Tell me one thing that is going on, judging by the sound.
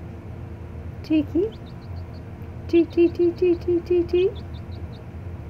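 A chick cheeps loudly a few times, close by.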